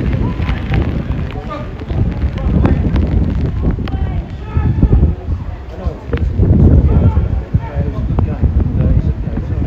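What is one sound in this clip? Footballers shout to each other across an outdoor pitch.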